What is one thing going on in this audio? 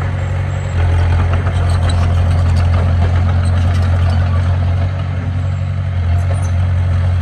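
Dirt and rocks scrape and tumble as a bulldozer pushes them.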